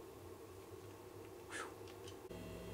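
A man speaks quietly to the listener, close by.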